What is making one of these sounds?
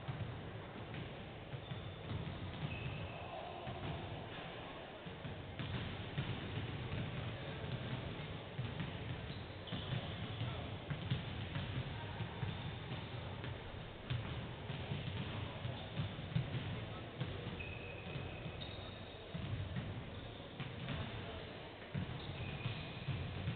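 Basketballs bounce repeatedly on a wooden court, echoing in a large hall.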